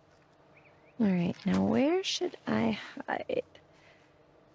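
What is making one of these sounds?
A young woman speaks quietly to herself, close by.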